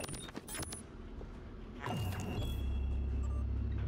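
A game menu beeps as it opens.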